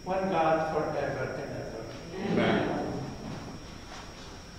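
A man chants calmly and echoes through a large hall.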